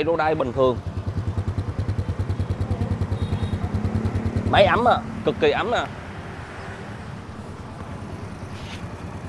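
A motorcycle engine idles with a steady, even putter.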